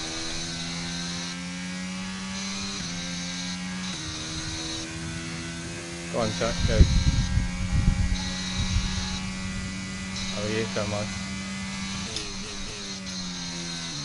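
A racing car engine whines at high revs, shifting up through the gears.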